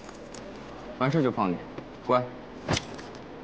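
A young man speaks sharply.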